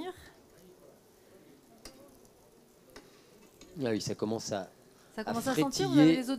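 Bread sizzles softly in a frying pan.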